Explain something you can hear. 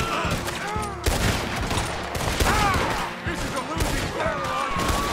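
Gunshots crack loudly, one after another.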